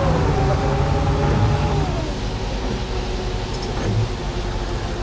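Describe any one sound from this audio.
A bus engine hums steadily and winds down in pitch.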